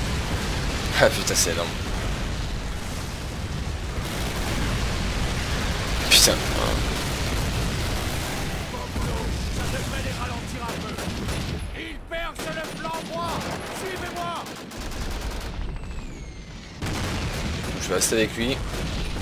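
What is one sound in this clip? A rifle fires a few loud, sharp shots.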